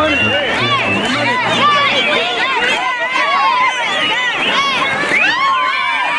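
Women laugh and cheer close by.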